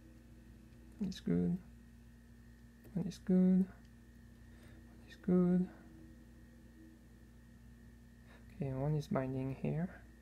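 Small metal parts click and clink together by hand.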